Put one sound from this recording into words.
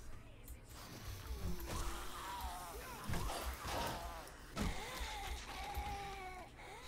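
A zombie growls and snarls nearby.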